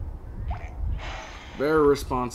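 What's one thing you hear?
Wooden blocks crash and clatter in a game.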